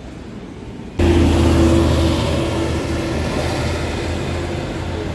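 A bus engine rumbles loudly nearby.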